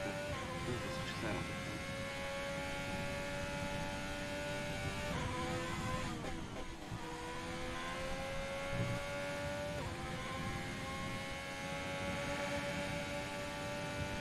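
A racing car engine whines at high revs, dropping sharply as it shifts gears and climbing again.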